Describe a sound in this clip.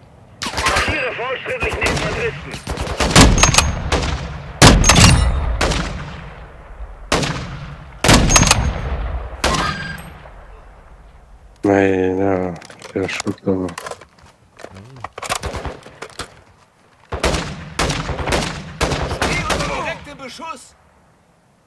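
Rifle shots boom and echo one after another.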